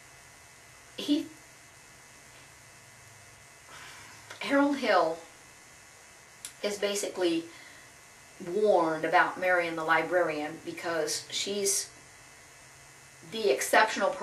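A middle-aged woman speaks calmly and close by, in short bursts with pauses.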